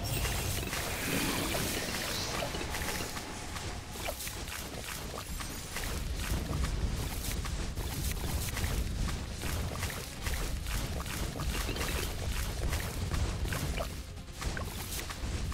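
Rapid pops and blasts of game sound effects crackle without a break.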